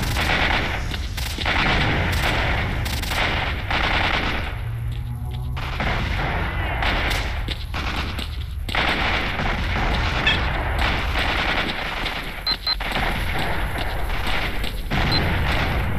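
Footsteps crunch steadily on hard ground.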